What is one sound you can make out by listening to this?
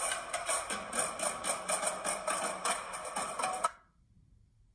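A drumline plays loud snare and tenor drums.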